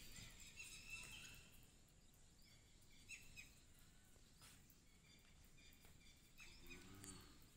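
Cattle hooves plod on dirt.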